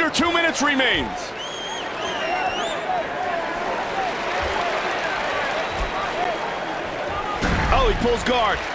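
A crowd roars and cheers steadily in a large arena.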